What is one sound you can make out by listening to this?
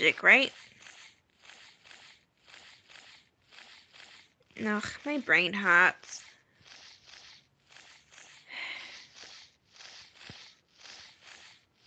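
Large wings flap in a steady rhythm.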